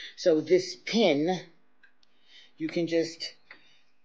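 Metal keys clink softly against a hook.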